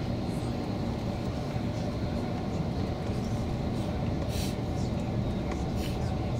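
An engine and road noise rumble low inside a moving bus.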